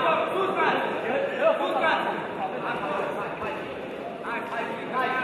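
A crowd of spectators murmurs and calls out in a large hall.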